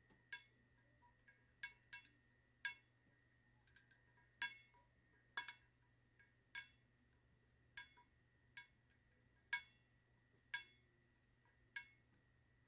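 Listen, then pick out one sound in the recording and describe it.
Fingernails tap and click against a plastic tumbler as it is turned.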